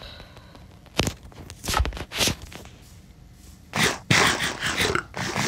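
Footsteps crunch on grass and dirt.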